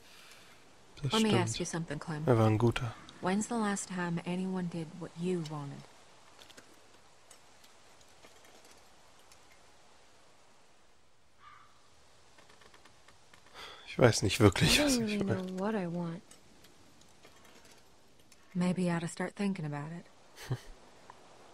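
A young woman speaks calmly and quietly, close by.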